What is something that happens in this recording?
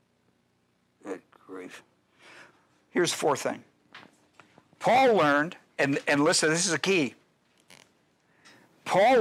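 An older man speaks with emphasis through a microphone.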